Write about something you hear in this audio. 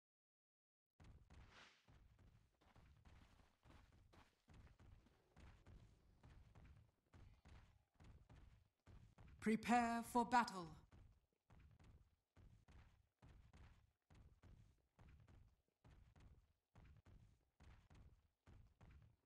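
Heavy footsteps thud at a steady pace.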